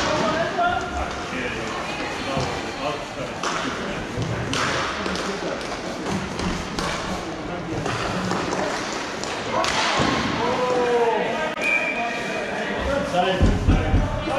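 Roller skates roll and scrape across a hard floor in a large echoing hall.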